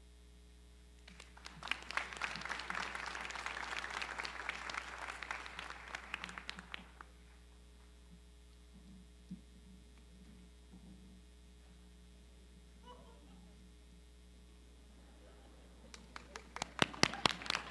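An audience applauds and cheers in a large echoing hall.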